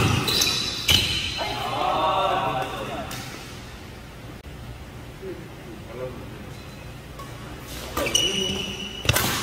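A racket smacks a shuttlecock with a sharp crack.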